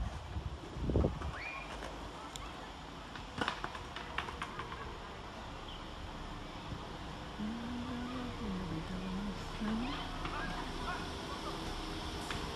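A diesel train approaches along the tracks with a rising engine hum.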